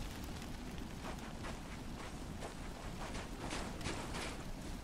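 Boots crunch quickly on dry ground as someone runs.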